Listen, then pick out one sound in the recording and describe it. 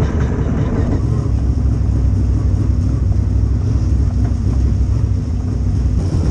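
A dirt late model race car's V8 engine rumbles and revs, heard from inside the car.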